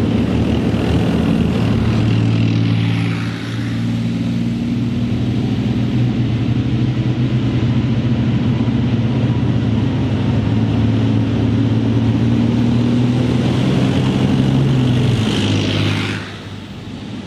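Tank tracks clatter and squeal on a gravel road.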